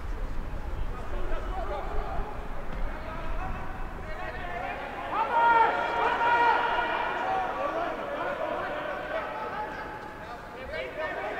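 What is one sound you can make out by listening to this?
Men shout calls to each other across an open field.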